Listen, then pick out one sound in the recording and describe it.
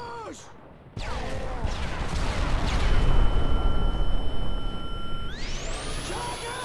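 A loud explosion booms and rumbles nearby.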